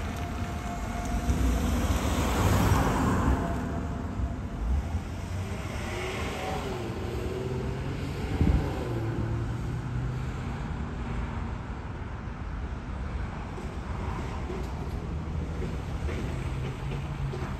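A car engine hums low as the car rolls slowly along.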